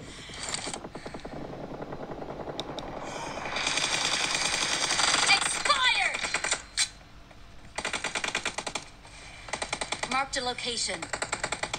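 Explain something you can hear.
Rapid gunshots from a mobile game play through a small phone speaker.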